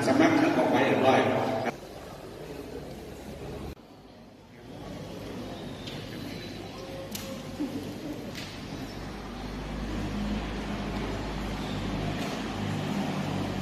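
Voices murmur in a large echoing hall.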